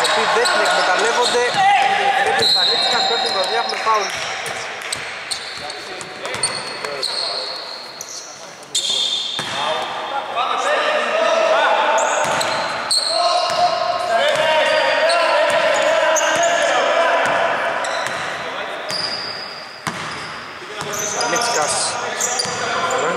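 Young men call out and talk loudly in an echoing hall.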